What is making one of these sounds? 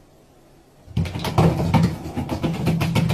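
Water pours from a jug and splashes into a bathtub.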